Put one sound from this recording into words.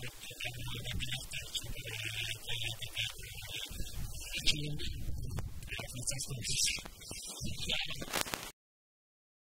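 A young man speaks calmly into a microphone close by.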